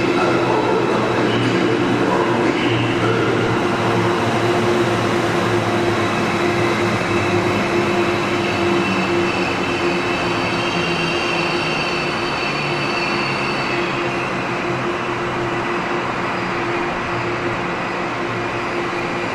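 A train rolls slowly through a large echoing hall with a steady rumble and hum.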